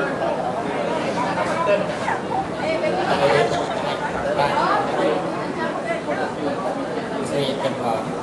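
A crowd of men and women chatter nearby at the same time.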